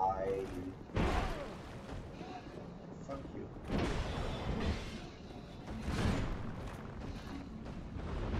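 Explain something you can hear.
Heavy weapons strike and clash in close combat.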